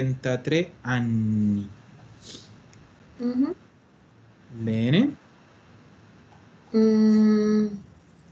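A woman speaks slowly and clearly through an online call.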